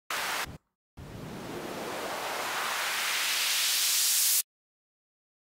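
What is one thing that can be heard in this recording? A hissing synthesizer noise sweeps steadily upward in pitch and grows louder.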